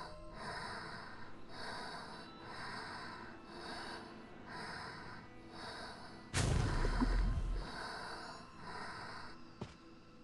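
Footsteps run quickly and evenly on a hard floor.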